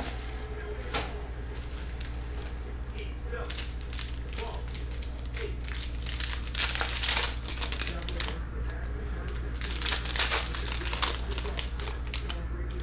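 Foil card packs crinkle and rustle as hands handle them.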